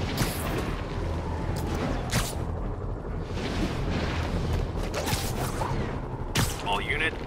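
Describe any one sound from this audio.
Wind rushes steadily past during fast swinging through the air.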